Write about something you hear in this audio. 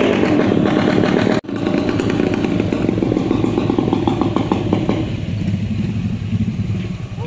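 Motorcycle engines putter and rev close by.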